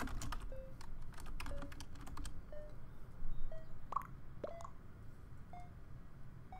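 A short electronic tone blips about once a second.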